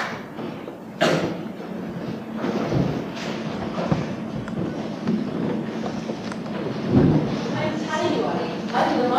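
Young men speak loudly on a stage in a large echoing hall.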